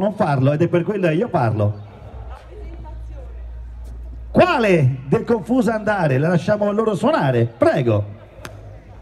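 A man reads out loudly through a microphone and loudspeaker outdoors.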